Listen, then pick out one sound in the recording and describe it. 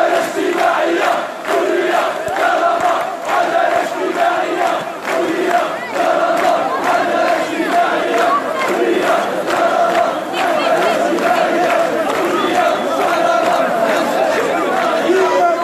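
A large crowd chants loudly in unison, with the sound echoing off the buildings.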